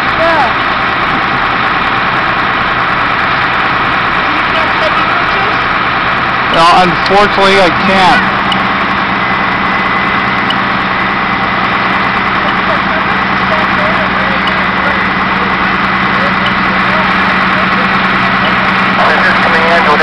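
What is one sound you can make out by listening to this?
A large fire roars and crackles steadily.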